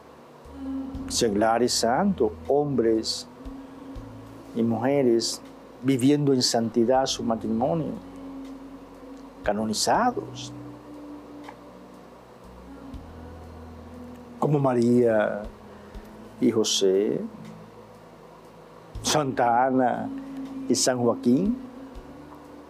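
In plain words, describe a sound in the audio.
An elderly man speaks slowly and with feeling into a microphone, pausing often.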